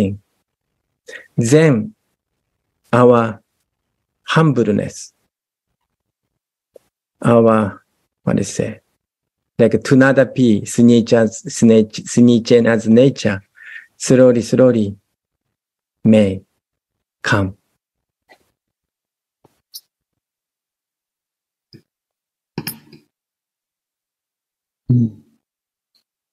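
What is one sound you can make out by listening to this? A middle-aged man speaks calmly over an online call, with pauses between phrases.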